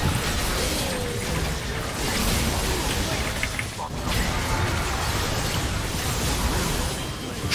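Game spell effects blast and crackle in a chaotic fight.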